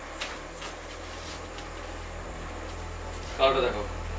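Cloth rustles as it is unfolded.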